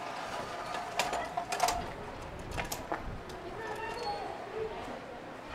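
A wheelchair's metal frame clicks and clanks as it is folded.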